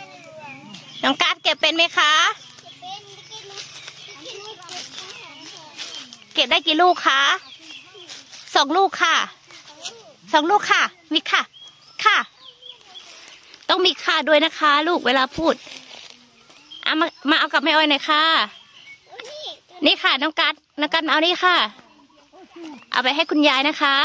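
A young child talks loudly and excitedly close by.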